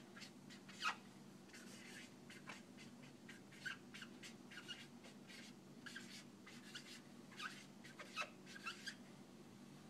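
A marker squeaks and taps across a whiteboard.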